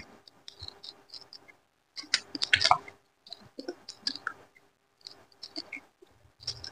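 A man chews food loudly and wetly with his mouth close to a microphone.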